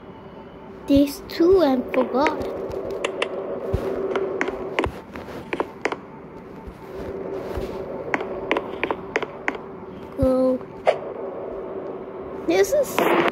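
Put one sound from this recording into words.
Footsteps patter quickly across a wooden floor.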